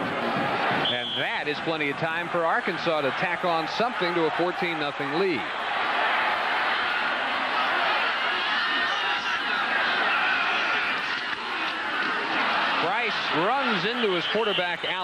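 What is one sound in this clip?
A large stadium crowd roars and cheers outdoors.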